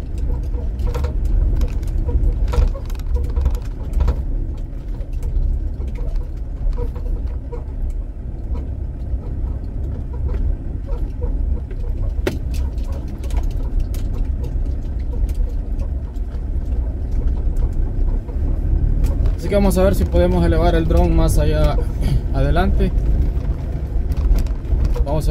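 Tyres crunch and bump over a rough dirt road.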